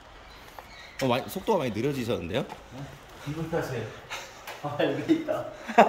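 A man talks with animation while walking, close by.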